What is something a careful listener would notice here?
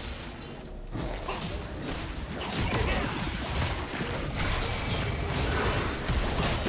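Magic spells whoosh and crackle in a fast fight.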